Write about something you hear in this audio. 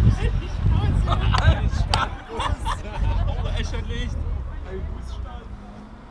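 A group of young men and women chatter and laugh a short way off, outdoors.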